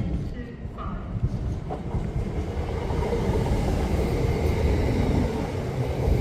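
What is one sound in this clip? A high-speed train rushes by close with a loud roaring whoosh.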